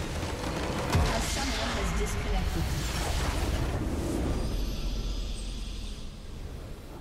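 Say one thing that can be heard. A booming explosion sounds in a video game.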